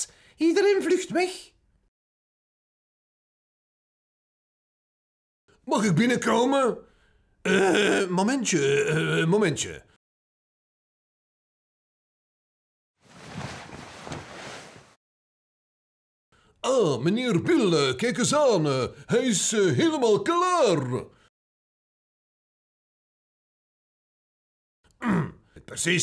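A man speaks in a playful, exaggerated character voice, close to the microphone.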